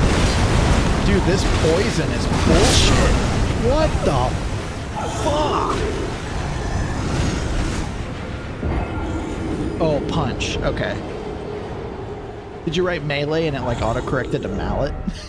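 A young man talks and exclaims loudly into a close microphone.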